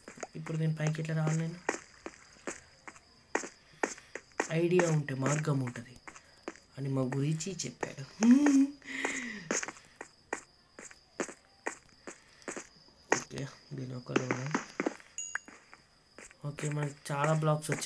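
Footsteps tap steadily on stone.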